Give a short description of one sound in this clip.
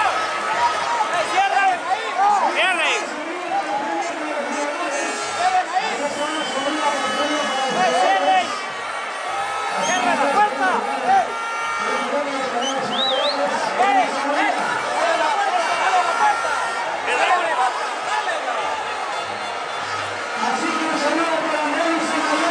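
A large stadium crowd cheers and shouts loudly outdoors.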